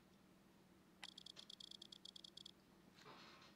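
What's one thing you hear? Rapid electronic ticks sound as a score counts down.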